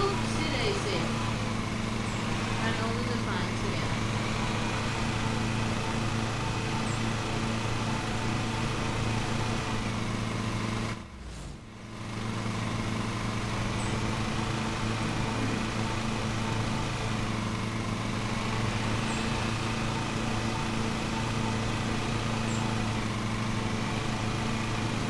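A riding lawn mower engine drones steadily.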